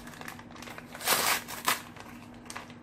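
A paper packet is torn open.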